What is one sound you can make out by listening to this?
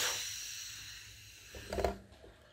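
Air hisses out of a balloon and slowly fades.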